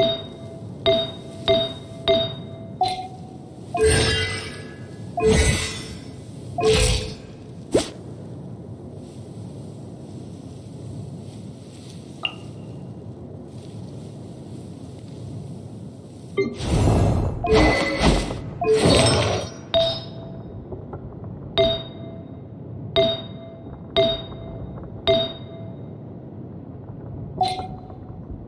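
Short soft chimes ring out again and again.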